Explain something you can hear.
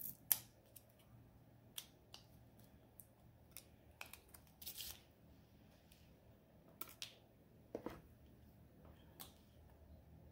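Fingertips tap and click against a hard plastic case.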